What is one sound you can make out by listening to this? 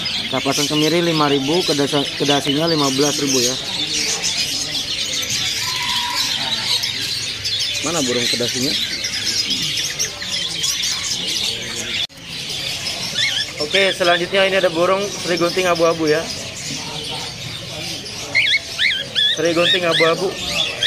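Many small birds chirp and twitter busily close by.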